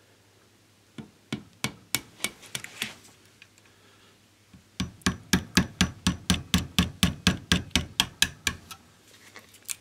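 A small hammer taps rapidly on metal.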